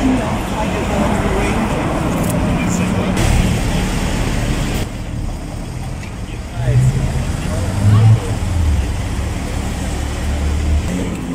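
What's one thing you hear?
City traffic rumbles past on a busy street outdoors.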